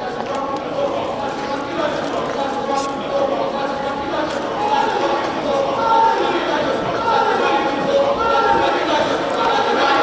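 A large choir sings together in an echoing hall.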